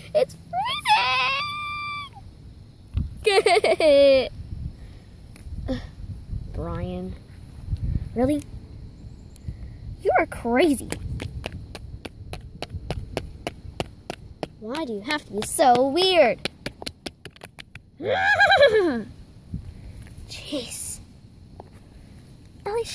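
Plastic toy animals brush and rustle through grass.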